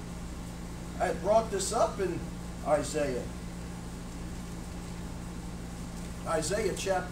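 A man speaks calmly from a distance in a room with some echo.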